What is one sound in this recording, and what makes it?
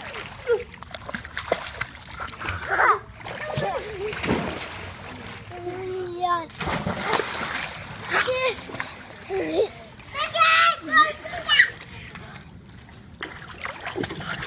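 Water splashes as a small child kicks and paddles.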